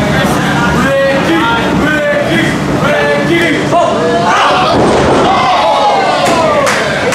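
A wrestler's body thuds onto a ring mat.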